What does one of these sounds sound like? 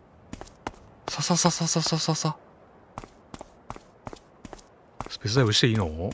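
Light footsteps tap along quickly.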